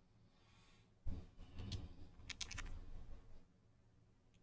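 A man speaks softly and close into a microphone.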